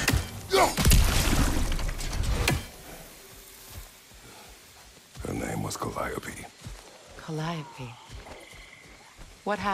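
Footsteps crunch through undergrowth.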